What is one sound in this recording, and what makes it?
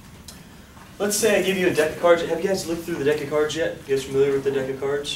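A man speaks loudly and clearly to a room, with a slight echo.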